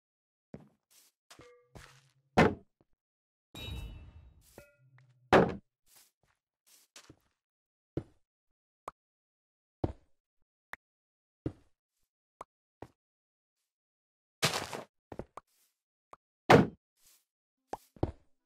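Blocks crack and break with short, sharp knocks as a pickaxe digs.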